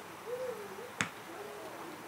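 A soccer ball is kicked with a sharp thump.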